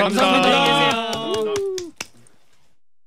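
Several men sing together through microphones.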